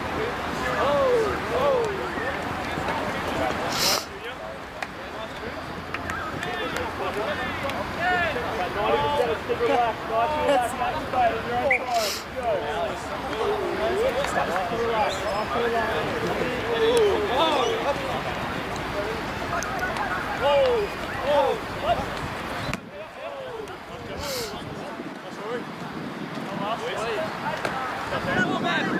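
Young men shout and call to one another outdoors on an open field.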